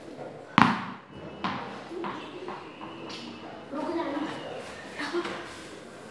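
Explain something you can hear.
A ball bounces and thuds on a hard floor in an echoing room.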